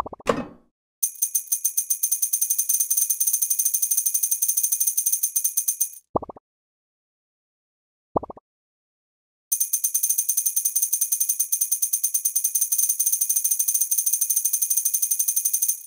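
Coins chime in quick, rapid succession as they are collected in a game.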